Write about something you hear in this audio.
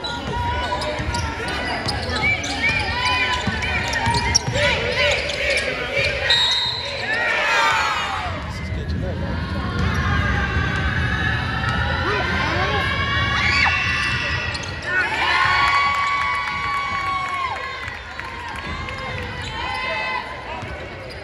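Sneakers squeak sharply on a court in a large echoing gym.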